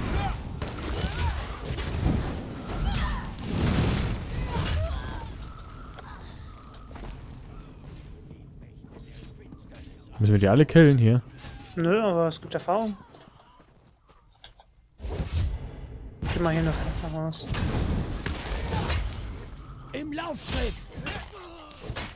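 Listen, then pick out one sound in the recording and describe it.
Blades clash and strike in a fierce fight.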